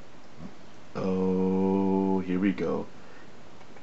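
A man groans in a long drawn-out voice.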